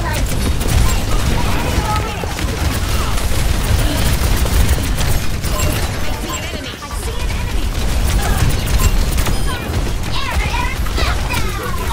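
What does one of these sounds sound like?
Explosions and game effects crackle loudly.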